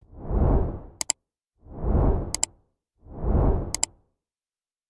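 A computer mouse clicks sharply several times.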